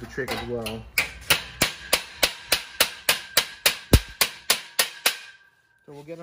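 A hammer strikes a metal frame in quick, steady blows, each ringing briefly.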